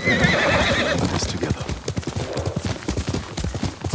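A horse gallops through grass.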